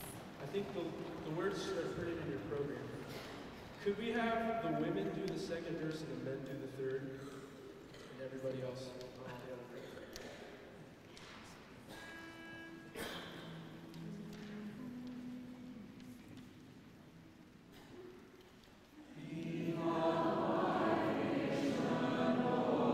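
A group of young men sing together in harmony in a reverberant hall.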